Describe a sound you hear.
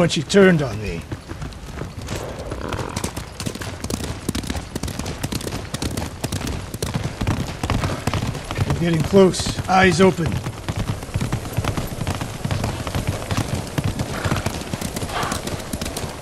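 Horses' hooves clop on wooden planks at a steady trot.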